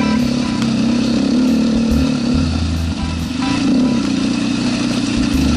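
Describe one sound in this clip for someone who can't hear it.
A motorbike engine hums steadily while riding uphill.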